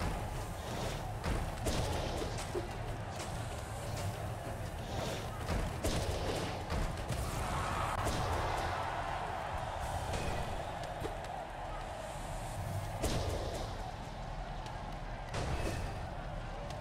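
Game sword slashes and hits crack sharply.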